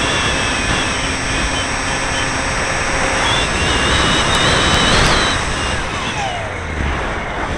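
Wind rushes and buffets loudly.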